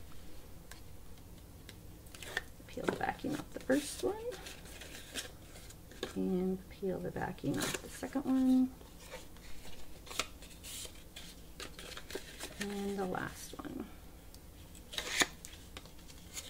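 Cardboard crinkles and rustles as it is folded by hand.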